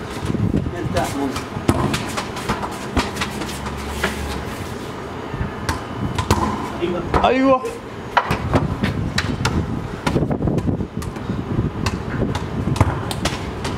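A ball thuds as a young boy kicks it on a hard floor.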